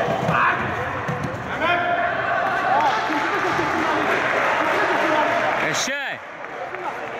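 A crowd cheers and shouts loudly in a large echoing hall.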